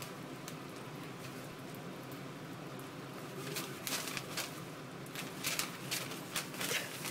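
Newspaper rustles and crinkles close by.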